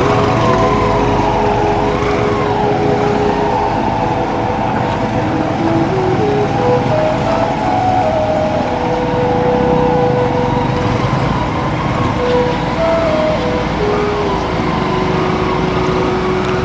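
A motorcycle engine putters steadily up close.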